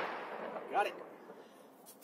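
A black powder revolver fires with a loud bang that echoes outdoors.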